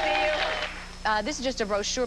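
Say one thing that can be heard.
A woman talks into a microphone.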